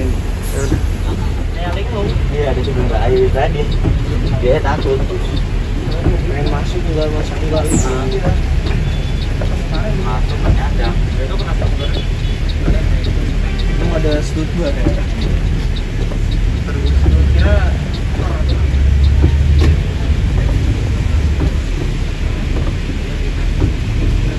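Heavy rain drums steadily on a windshield.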